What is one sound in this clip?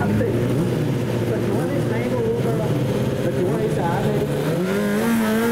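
A motorcycle engine idles and revs unevenly close by.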